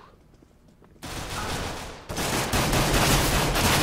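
Pistol shots ring out sharply with a short echo.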